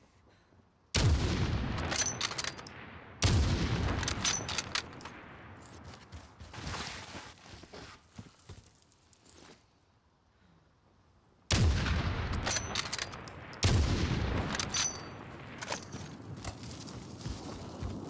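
A rifle fires loud single shots that echo and roll away across open ground.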